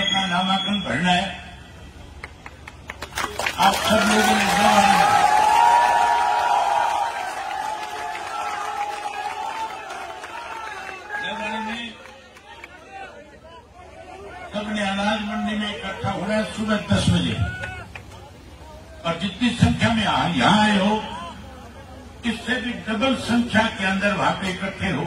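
A man speaks loudly through a loudspeaker to a large crowd outdoors.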